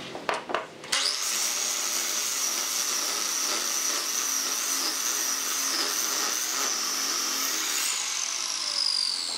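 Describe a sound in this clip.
A miter saw whines loudly as it cuts through a wooden block.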